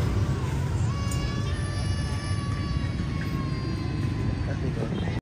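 A young child wails and cries loudly nearby.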